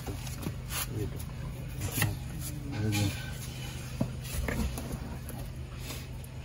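A wet fish squelches as hands rub it with a cloth.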